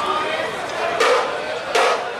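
Cymbals crash.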